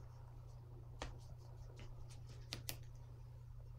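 A brush taps and swirls in a paint palette.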